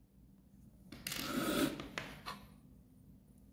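A small circuit board knocks and rustles on a hard table.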